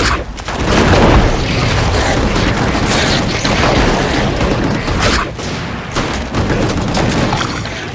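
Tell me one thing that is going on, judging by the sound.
Flames roar from a flamethrower.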